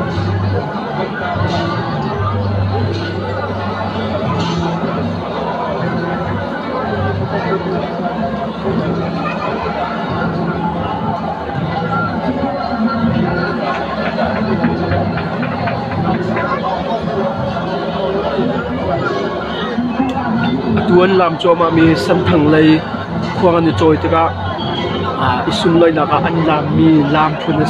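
A large crowd of men and women chatters and shouts outdoors.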